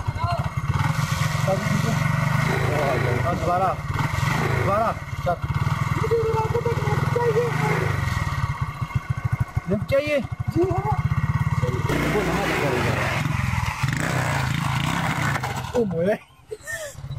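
A motorcycle engine idles close by with a low, steady rumble.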